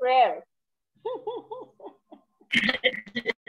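An elderly woman laughs over an online call.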